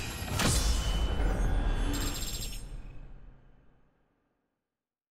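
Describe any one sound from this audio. A bright game chime swells with a whoosh and slowly fades away.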